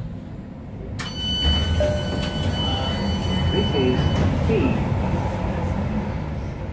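Another light rail metro car passes close by in the opposite direction.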